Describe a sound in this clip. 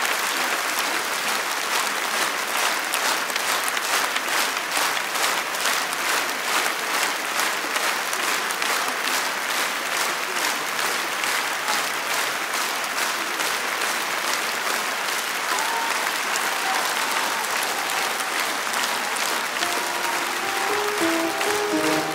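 A large audience applauds in a big hall, with rhythmic clapping.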